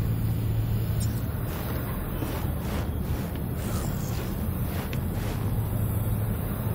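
A machine hums low and steady.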